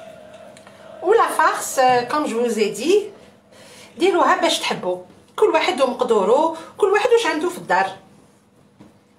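An elderly woman talks with animation close by.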